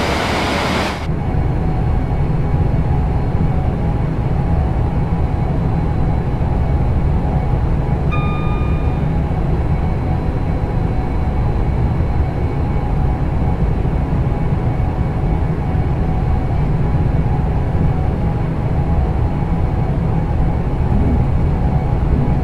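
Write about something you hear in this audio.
A low, steady rumble fills a train's cab as it runs.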